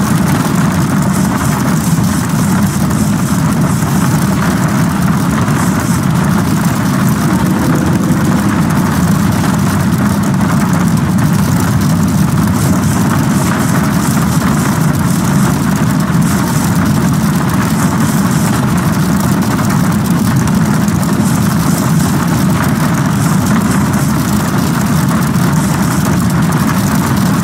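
Rain patters steadily on a windshield.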